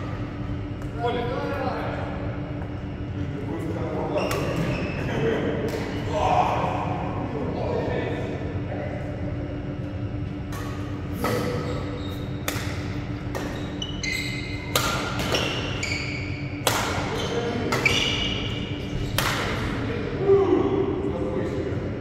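Men talk casually across the hall.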